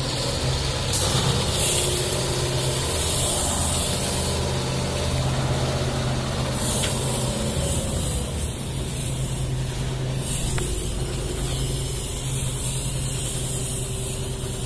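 A pressure sprayer hisses as it blasts a mist.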